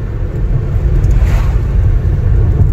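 An oncoming car passes by with a brief whoosh.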